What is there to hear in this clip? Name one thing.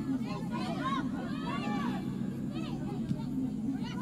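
A football is kicked hard with a dull thump.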